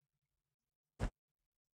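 A door knob clicks.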